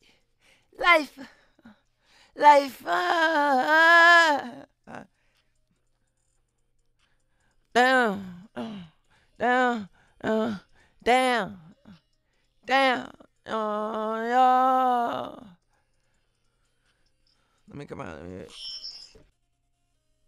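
A man sings loudly in short phrases.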